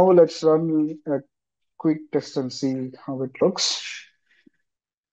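A man speaks calmly into a microphone, heard over an online call.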